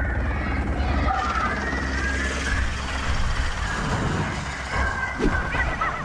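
Helicopter rotors whir overhead.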